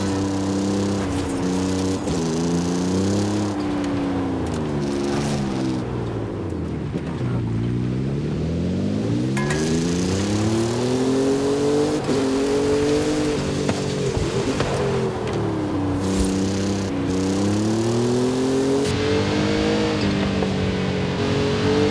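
A buggy's engine roars, revving up and down as the gears shift.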